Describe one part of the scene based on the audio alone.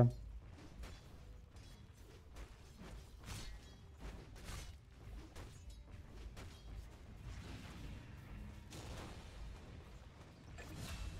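Weapons clash with sharp hits.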